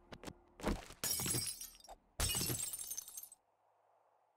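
A glass pane shatters.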